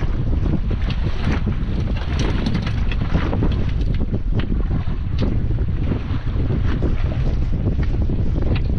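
Waves splash against the side of a boat.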